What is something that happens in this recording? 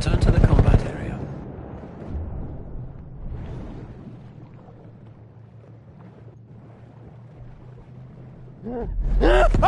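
Water splashes and gurgles.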